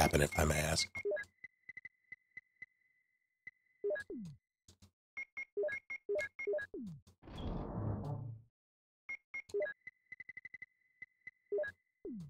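Short electronic beeps sound in quick runs.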